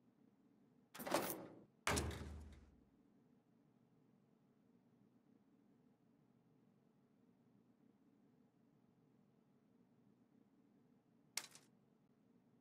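Sharp game menu whooshes sound as the menu changes.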